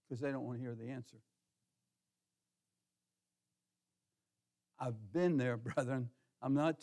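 An elderly man speaks calmly into a microphone in a large hall.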